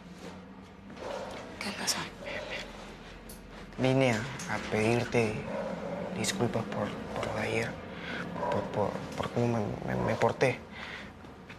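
A young woman speaks in a firm, raised voice close by.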